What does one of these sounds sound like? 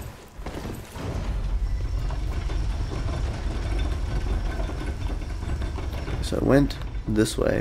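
A deep rumbling drone fills the space.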